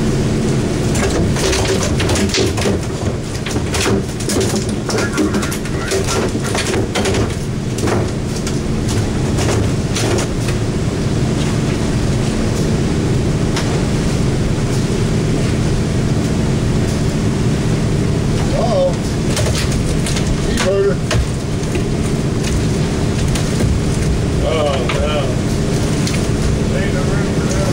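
Water splashes and laps against a boat's hull.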